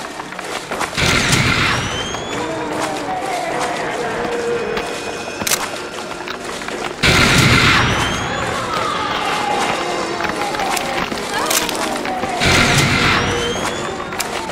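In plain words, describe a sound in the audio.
A handheld scanner crackles with bursts of electronic static.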